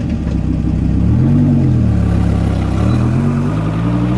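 A car engine revs and roars as the car drives away.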